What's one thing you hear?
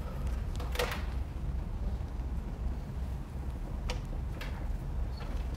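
A projector fan hums steadily in the room.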